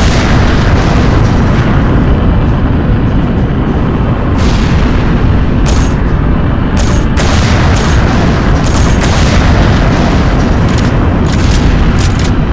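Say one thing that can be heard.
A hovering aircraft engine roars steadily.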